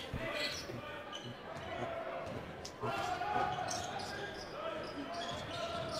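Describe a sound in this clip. A crowd murmurs faintly in a large echoing gym.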